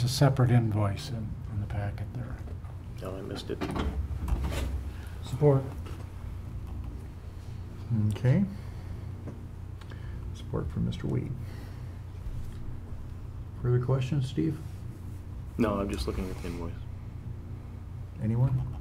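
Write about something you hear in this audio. A man speaks calmly through a microphone in a room with a slight echo.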